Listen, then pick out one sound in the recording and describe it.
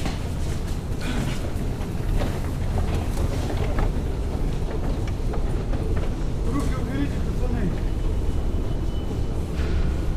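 An escalator rumbles steadily.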